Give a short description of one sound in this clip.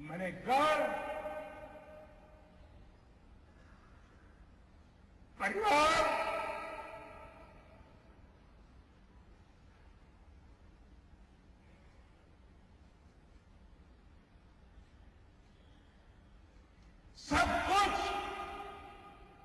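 An elderly man speaks slowly and emotionally into a microphone in a large echoing hall, with long pauses.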